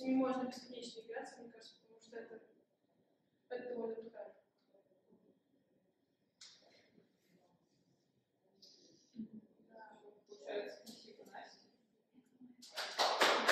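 A young woman speaks calmly into a microphone in a room with slight echo.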